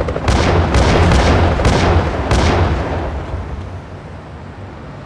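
A series of heavy explosions booms and rumbles, then fades away.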